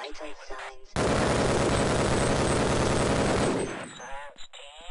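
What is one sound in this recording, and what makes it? A rifle fires in rapid automatic bursts.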